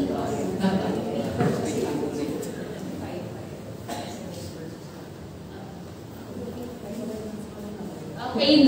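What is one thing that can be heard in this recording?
A young woman speaks calmly into a microphone in an echoing room.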